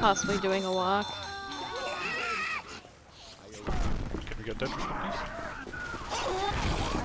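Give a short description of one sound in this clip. A monster growls and snarls close by.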